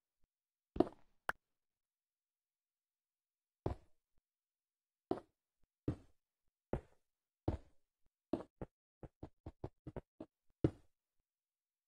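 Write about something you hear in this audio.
Blocks are placed one after another with short, dull thuds.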